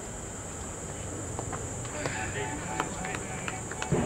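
A cricket bat strikes a ball with a sharp knock outdoors.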